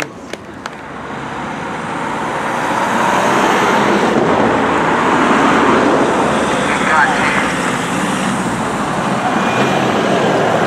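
Tyres hiss on the road.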